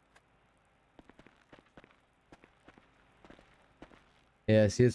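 Footsteps crunch on loose wood chips.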